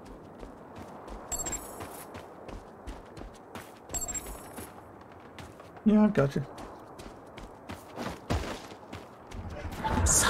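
Footsteps run quickly over rocky ground.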